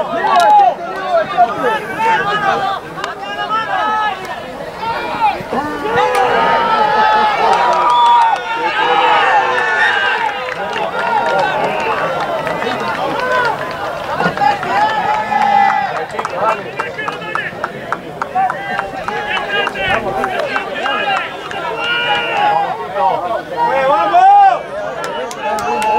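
Young men shout and call to each other loudly outdoors.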